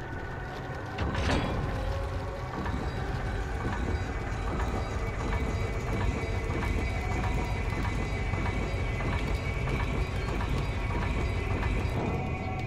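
A heavy stone mechanism grinds and rumbles steadily.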